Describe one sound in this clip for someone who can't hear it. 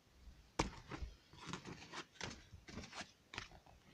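Playing cards rustle and slide as a hand gathers them up.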